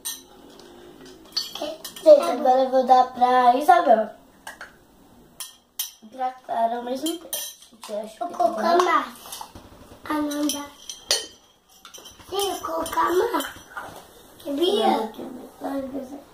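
Toy plastic dishes clink and clatter.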